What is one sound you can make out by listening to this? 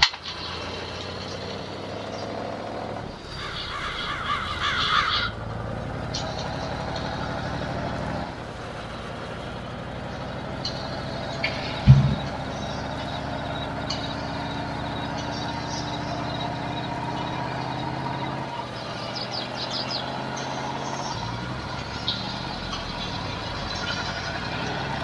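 Tyres crunch on gravel.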